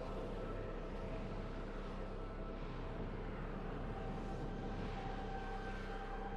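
A spaceship engine hums and drones steadily.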